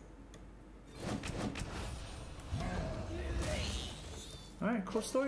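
Digital card game sound effects whoosh and chime.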